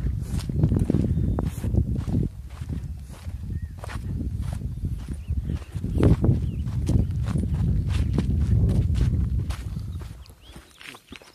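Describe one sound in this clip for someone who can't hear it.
Wind gusts outdoors, rumbling against the microphone.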